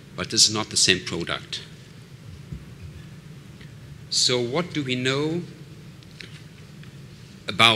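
A middle-aged man speaks calmly into a microphone, heard through a loudspeaker in a hall.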